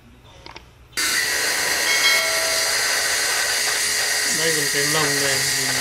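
A pressure washer sprays water with a loud, steady hiss.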